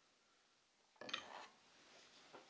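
A wooden mallet knocks down onto a table.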